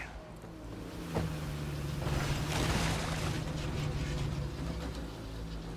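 Water splashes and sprays under rolling tyres.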